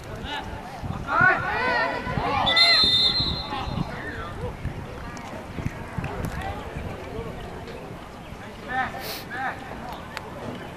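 Young men shout excitedly across an open field.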